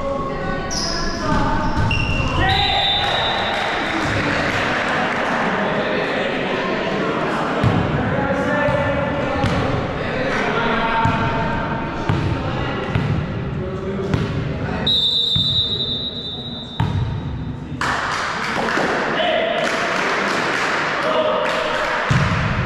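Young men call out to each other in an echoing hall.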